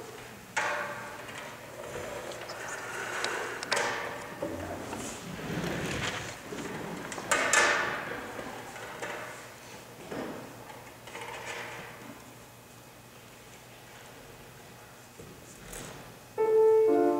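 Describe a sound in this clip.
String instruments play together in a large echoing hall.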